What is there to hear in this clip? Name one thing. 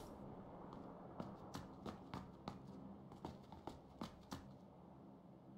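Footsteps thud across a wooden floor.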